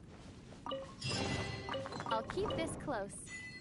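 A treasure chest creaks open with a bright chime.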